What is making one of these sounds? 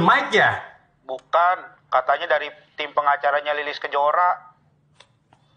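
A middle-aged man talks on a phone with animation.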